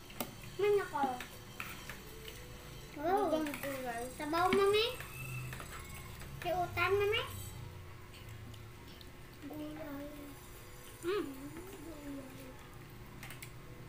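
A spoon scrapes and clinks against a dish.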